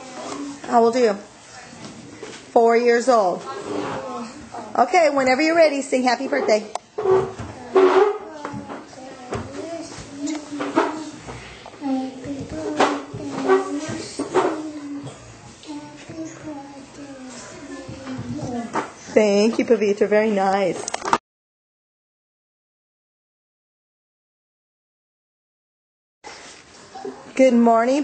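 A young girl speaks close into a microphone.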